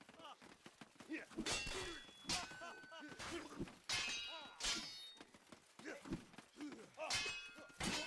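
Steel swords clash and ring sharply.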